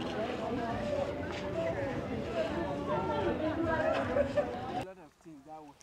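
People chatter in a busy outdoor market.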